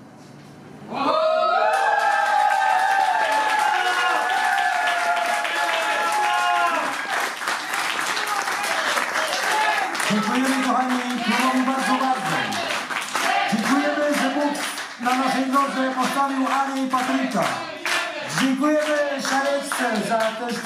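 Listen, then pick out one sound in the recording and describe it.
A choir of men and women sings loudly into microphones.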